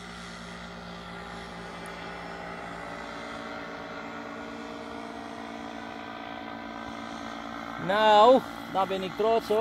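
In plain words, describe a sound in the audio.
A small aircraft engine drones steadily high overhead.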